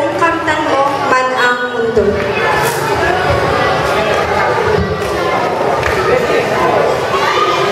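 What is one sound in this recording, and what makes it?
A young woman sings into a microphone through loudspeakers.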